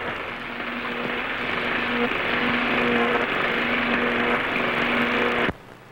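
Electric sparks crackle and buzz loudly.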